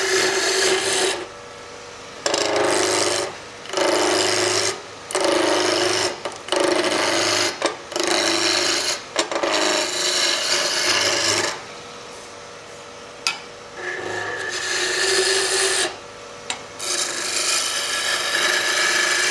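A chisel scrapes and cuts into spinning wood in bursts.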